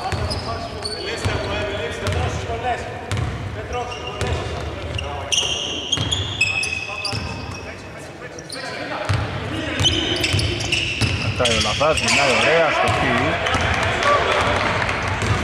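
A basketball is dribbled on a hardwood floor, its bounces echoing.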